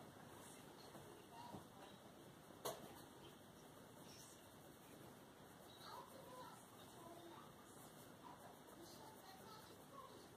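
A marker squeaks and scratches softly across paper.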